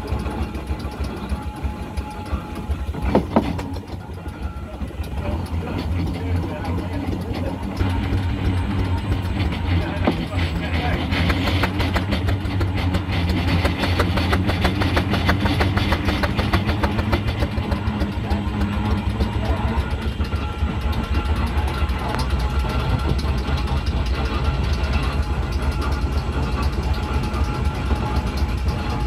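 A vehicle engine rumbles steadily as it drives slowly along a road.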